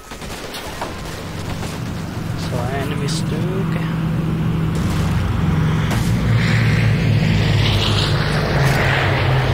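A tank engine rumbles and clanks nearby.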